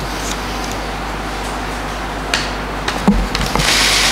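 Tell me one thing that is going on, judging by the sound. Paper rustles as a man handles sheets.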